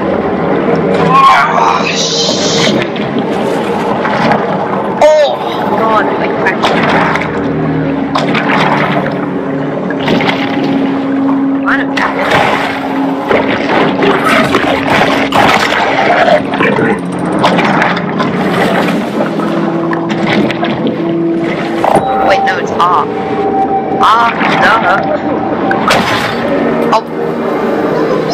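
Water rushes and swirls around a swimming shark.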